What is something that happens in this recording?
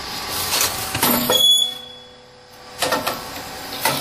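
A machine thumps and whirs as it presses.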